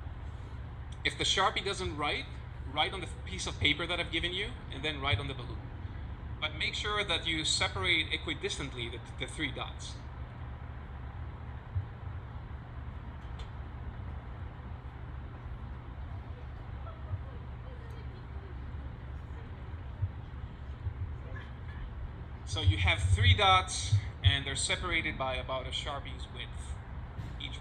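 A man speaks with animation into a microphone, heard through a loudspeaker outdoors, with pauses.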